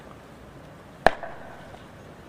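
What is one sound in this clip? A boot stamps sharply on the ground.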